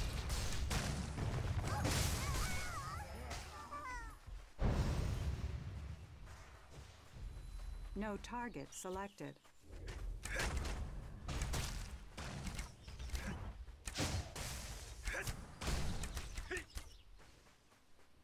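Magic spells burst and crackle during a fight.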